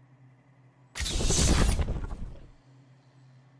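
A game menu plays a sweeping upgrade sound.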